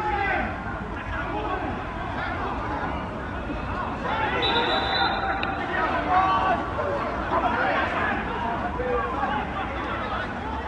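Several men shout and argue loudly outdoors.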